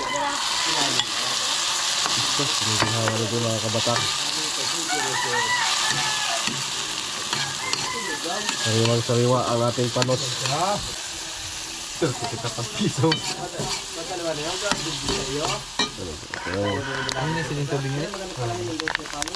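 A metal spoon scrapes and clinks against a pan while stirring.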